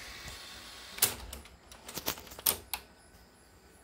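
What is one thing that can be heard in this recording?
A plastic dial clicks as it is turned by hand.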